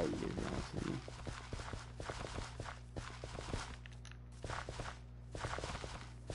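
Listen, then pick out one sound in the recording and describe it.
Quick, soft crunching knocks repeat as blocks of dirt are dug.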